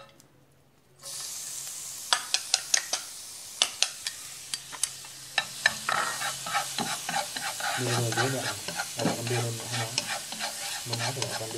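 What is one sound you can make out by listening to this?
Chopped garlic sizzles loudly in hot oil in a pan.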